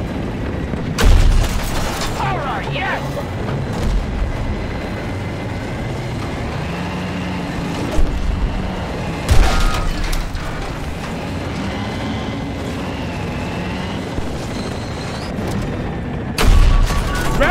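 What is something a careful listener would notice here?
A tank engine rumbles and its tracks clatter steadily.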